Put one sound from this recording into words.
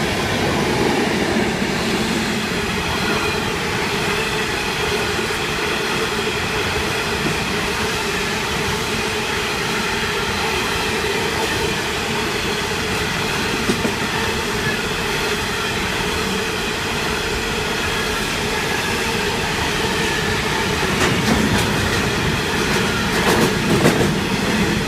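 A long freight train rumbles steadily past at close range.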